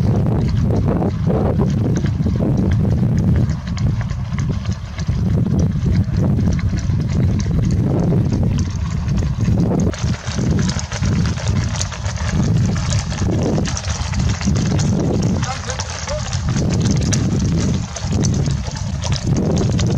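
Horses' hooves clatter on a paved road.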